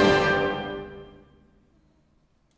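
A large wind band plays a final chord that rings out and fades in a reverberant hall.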